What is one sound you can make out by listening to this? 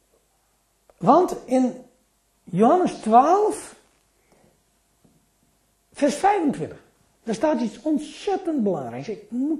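An elderly man speaks calmly and clearly into a microphone, in short phrases with pauses.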